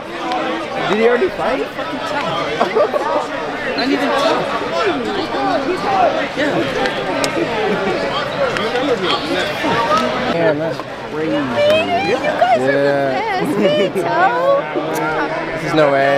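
A crowd chatters all around in a large echoing hall.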